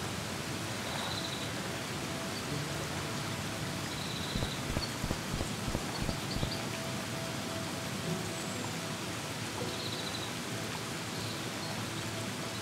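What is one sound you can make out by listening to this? Heavy rain pours steadily.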